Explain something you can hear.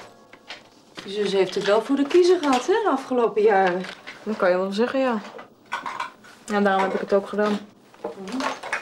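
A woman talks with animation nearby.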